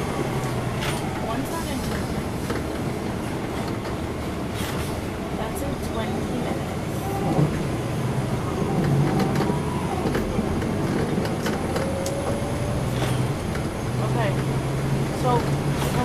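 The bus body rattles and clicks as it rolls along.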